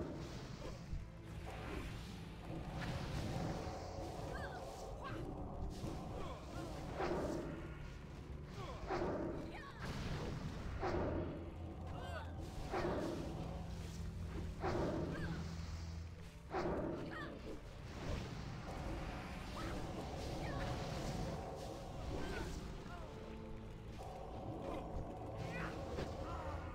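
Magic spells crackle and whoosh in rapid bursts.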